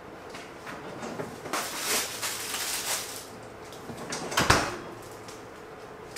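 Woven trays rustle and tap as they are handled.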